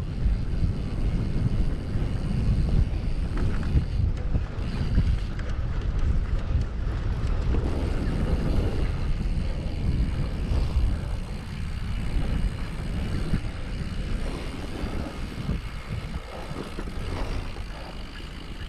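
Strong wind buffets a microphone outdoors.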